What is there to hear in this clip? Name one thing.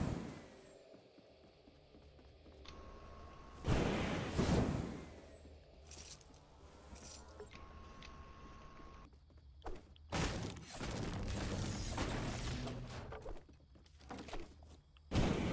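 Footsteps thud across a wooden floor.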